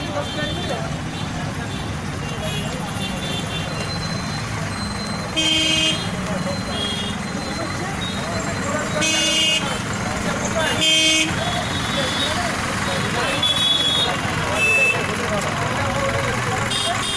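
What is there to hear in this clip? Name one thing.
Motorbike engines run nearby.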